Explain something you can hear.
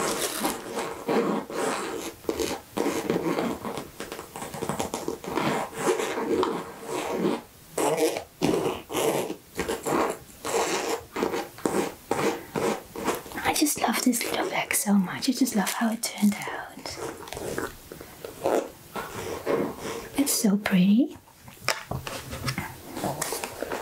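Fabric rustles as hands squeeze a pouch.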